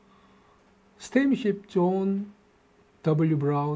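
A middle-aged man speaks with animation into a close microphone.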